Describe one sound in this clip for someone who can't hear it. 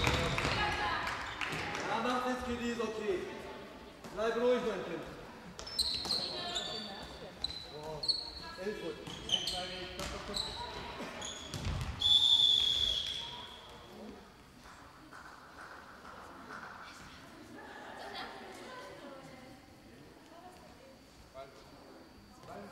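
Young women players shout across an echoing sports hall.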